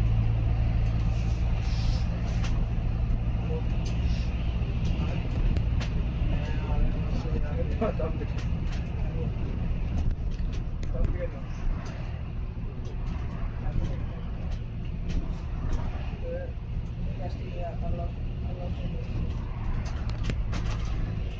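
A bus rattles and clatters as it rolls along.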